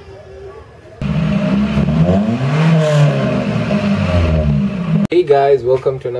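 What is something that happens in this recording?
A car engine hums as the car rolls in and stops.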